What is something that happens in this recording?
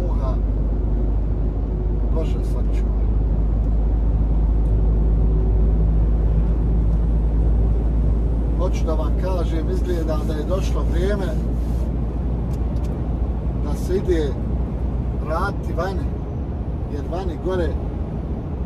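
A truck engine rumbles steadily while driving on a road.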